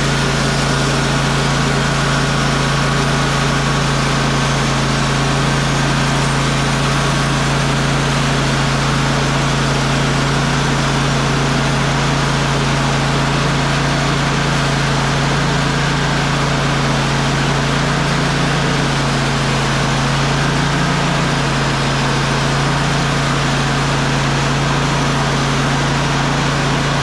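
A sawmill engine drones loudly and steadily close by.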